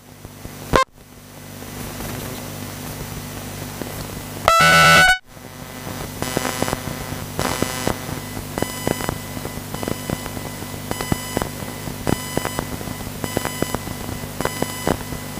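Small electric model cars whine as they race around a track.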